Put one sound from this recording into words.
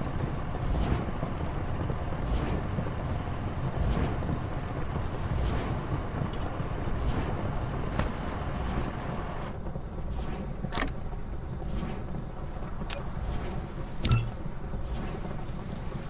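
Soft electronic clicks sound repeatedly.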